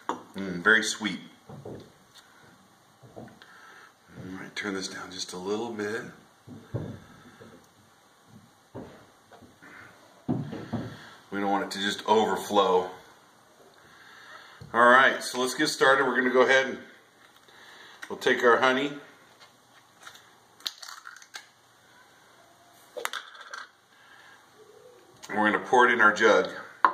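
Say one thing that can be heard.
A middle-aged man talks calmly and close by, pausing often.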